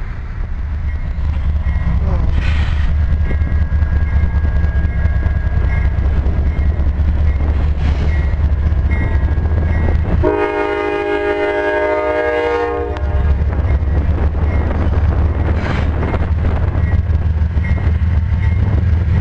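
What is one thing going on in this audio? A diesel locomotive engine roars as it approaches.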